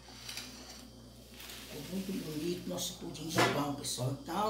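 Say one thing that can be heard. A plastic dish slides across a stone counter.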